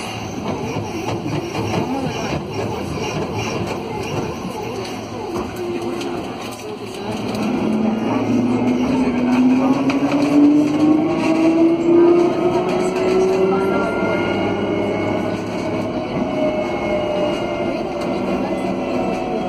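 A tram rumbles along on its rails.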